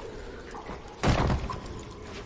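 A person lands with a heavy thud on loose rocks.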